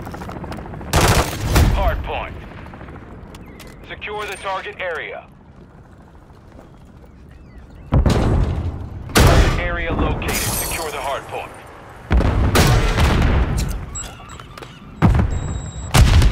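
Rapid gunfire bursts loudly and echoes.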